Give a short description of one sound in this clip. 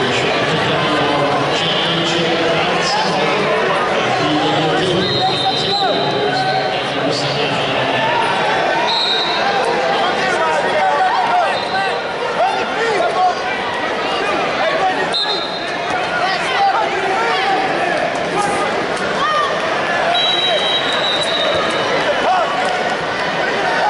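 A large crowd murmurs and calls out throughout a big echoing arena.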